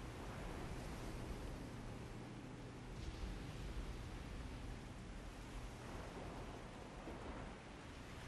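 Rough waves crash and surge around a boat.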